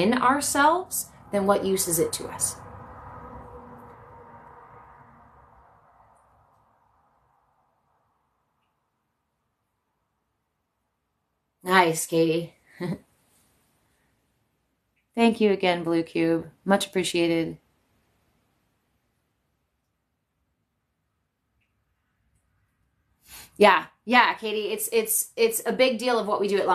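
A young woman speaks calmly and close by, with long pauses.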